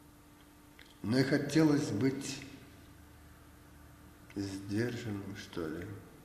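An elderly man speaks calmly and close to the microphone.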